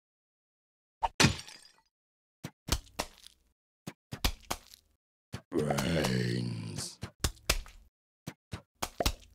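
Small game shots pop and thud in quick bursts.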